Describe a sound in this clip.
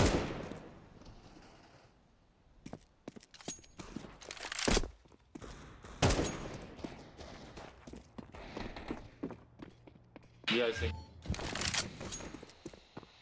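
Footsteps tap quickly on hard stone floors.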